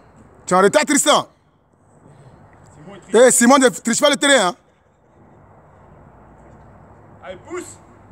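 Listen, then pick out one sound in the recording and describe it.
A young man shouts loudly outdoors.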